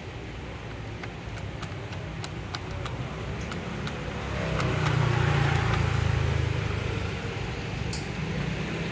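A finger presses buttons on a payphone keypad with soft clicks.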